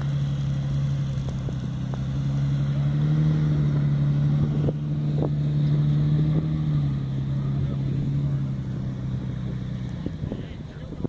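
A truck engine idles with a low, steady rumble close by.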